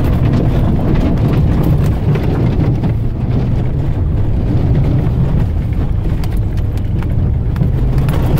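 Tall weeds and brush scrape and swish against the front of a vehicle.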